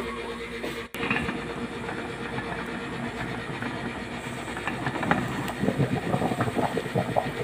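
A gas burner hisses steadily.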